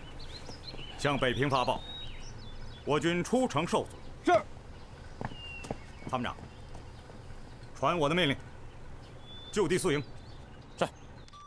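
A man gives orders in a firm voice.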